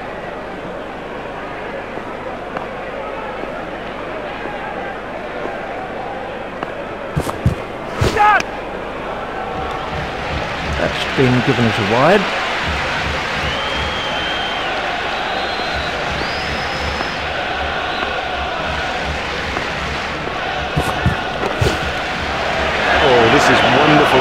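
A large crowd murmurs and cheers steadily in a stadium.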